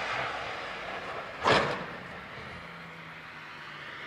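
Tyres slide on a wet road.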